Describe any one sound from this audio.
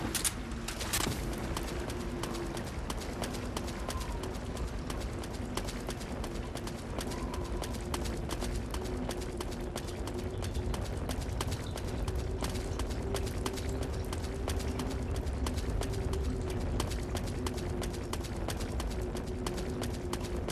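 A burning torch crackles and hisses.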